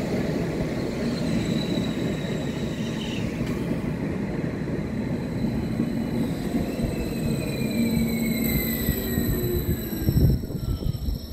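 A train rumbles loudly as it pulls away along the tracks.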